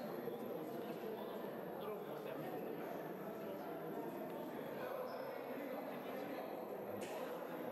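Men chat and murmur in a large echoing hall.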